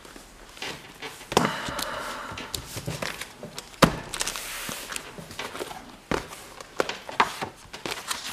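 Heavy binders knock and bump on a table.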